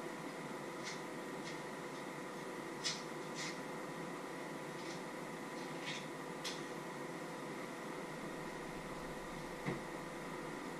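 Dishes and utensils clink and clatter on a counter.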